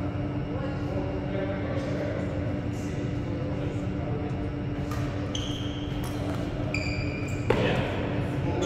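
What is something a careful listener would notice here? Rackets strike a shuttlecock in a large echoing hall.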